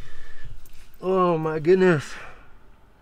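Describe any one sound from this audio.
A middle-aged man coughs into his elbow close by.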